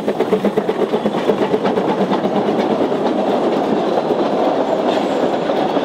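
Carriage wheels rumble and clatter on the rails.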